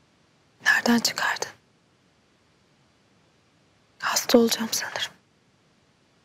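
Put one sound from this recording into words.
A young woman speaks quietly and unsteadily, close by.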